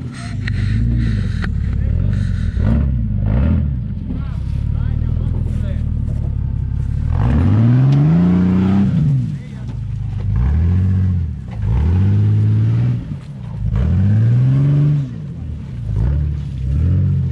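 Tyres crunch and scrape over loose rocks.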